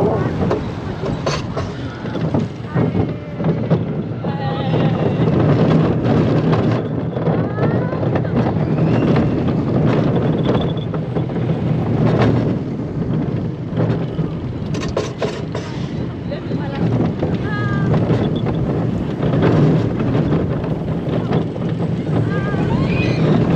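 Wind roars past at speed.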